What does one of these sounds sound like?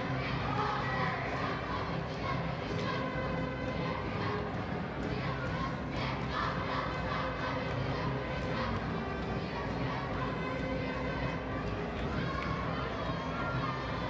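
A large crowd cheers and chatters in a big echoing gym.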